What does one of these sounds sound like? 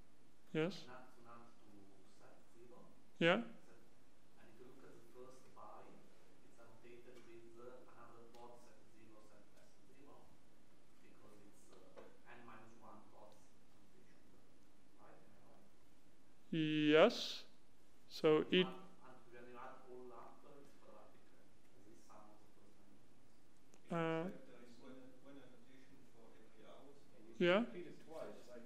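A man lectures calmly through a microphone in a large room.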